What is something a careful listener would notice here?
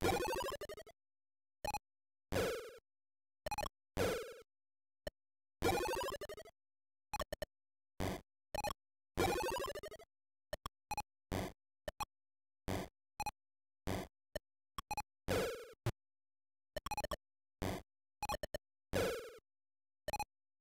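Short electronic blips and chiming tones sound in quick bursts.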